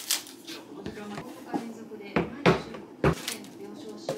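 Packages knock and clatter onto a hard counter.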